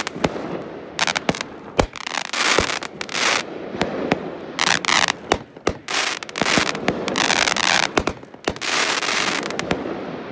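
Fireworks boom and bang, echoing outdoors.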